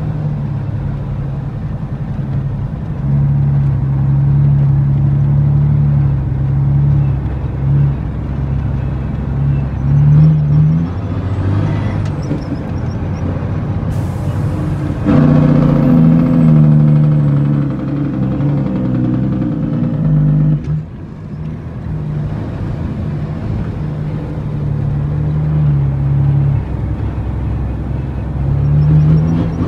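A vehicle engine drones and labours steadily from inside the cab.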